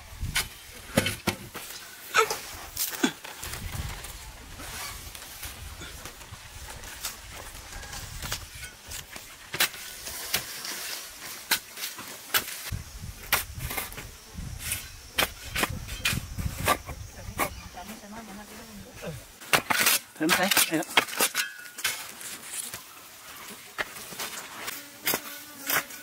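Loose soil and stones trickle and thud into a hole.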